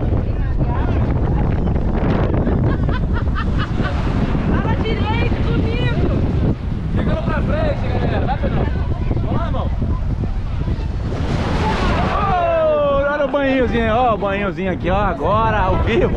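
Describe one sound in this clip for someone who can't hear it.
A group of young men and women chatter and laugh nearby.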